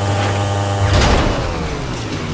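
A motorcycle crashes with a loud thud.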